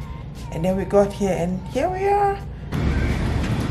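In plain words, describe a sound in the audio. A young woman talks animatedly, close to the microphone.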